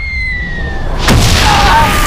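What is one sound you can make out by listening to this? A loud explosion bursts up close.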